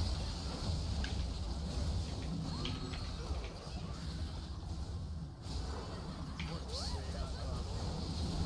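Spell effects whoosh and zap in quick bursts.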